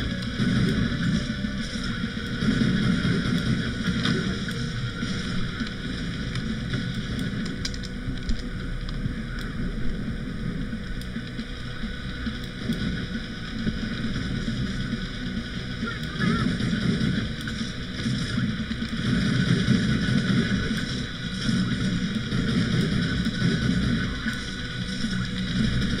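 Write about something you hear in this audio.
Energy weapons crackle and zap in bursts.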